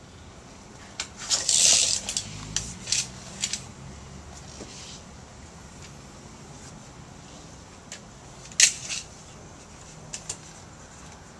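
A tape measure clicks and rattles.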